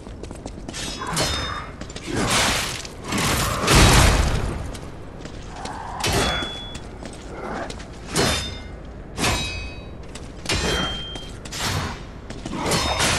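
Metal blades clash and ring in sharp strikes.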